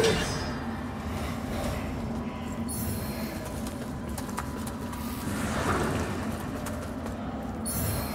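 Armoured footsteps scrape on stone.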